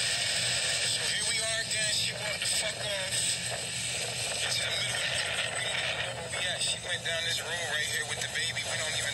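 A young man talks close to a phone microphone.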